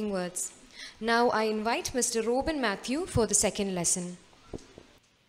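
A young woman speaks into a handheld microphone.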